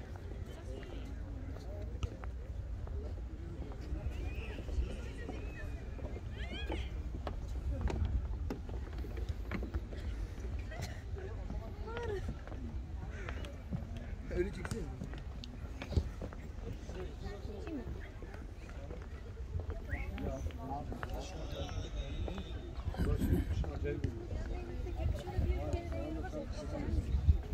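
People chatter at a distance.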